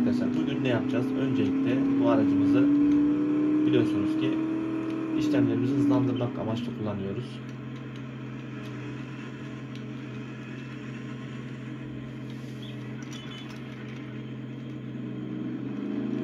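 A car engine hums and rises in pitch as the car speeds up, then drops to a low idle as it slows.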